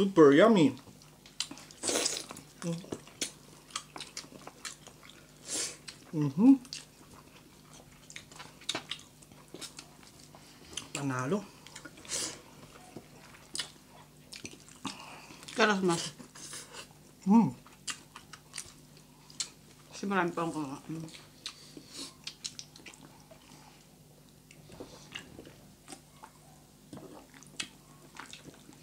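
A young woman chews and smacks her lips close by.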